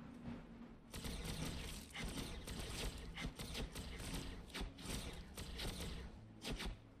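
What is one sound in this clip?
Laser weapons fire in quick bursts.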